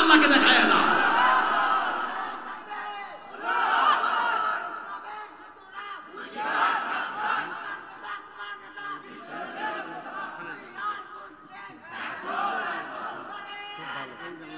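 A large crowd of men chants and shouts loudly in unison outdoors.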